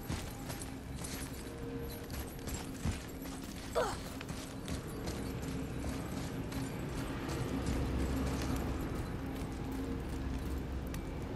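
Heavy footsteps thud on a hard floor.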